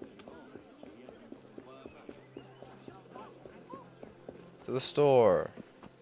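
Quick footsteps run across cobblestones.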